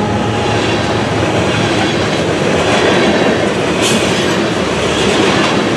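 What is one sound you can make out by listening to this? Steel wheels clatter and screech on the rails.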